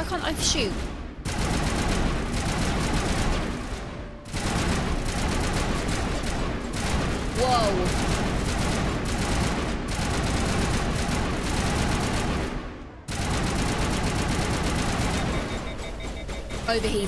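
Gunfire and blasts crackle loudly and without pause.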